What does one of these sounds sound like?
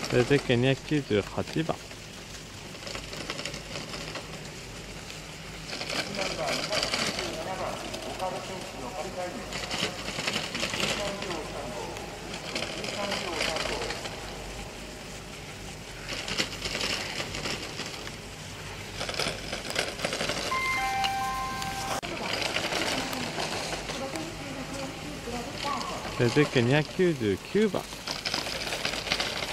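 Skis scrape and hiss across hard snow in quick turns.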